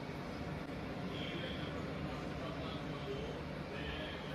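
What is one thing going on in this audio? A microwave oven hums steadily.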